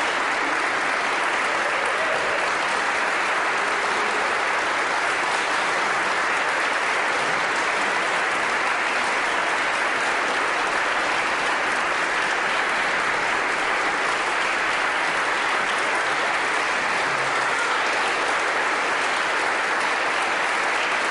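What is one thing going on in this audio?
A large crowd applauds steadily in an echoing hall.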